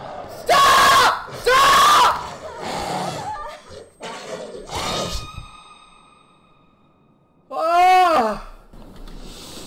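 A young man shouts and screams in fright close to a microphone.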